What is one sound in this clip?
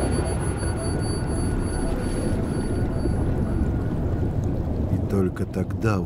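Water bubbles and rumbles in a muffled underwater roar.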